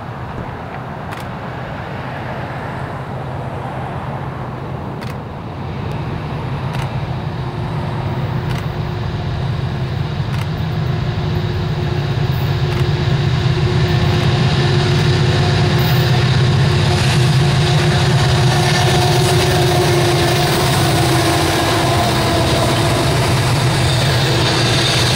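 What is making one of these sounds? Diesel locomotives rumble, growing louder as a freight train approaches and passes close by.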